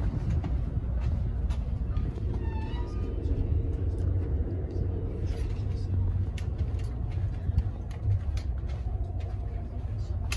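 A passenger train rumbles along the track, heard from inside a carriage.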